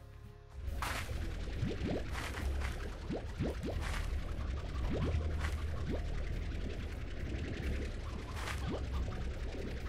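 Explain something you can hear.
Vegetables pop with rising whooshes as they are sucked into a gun.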